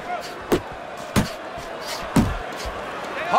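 Heavy punches thud against a body in sharp, separate blows.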